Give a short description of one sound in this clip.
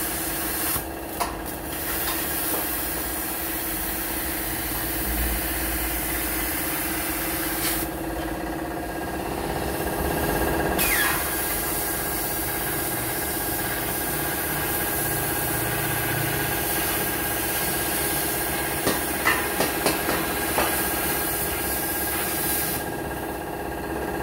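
An angle grinder whines steadily as it grinds metal.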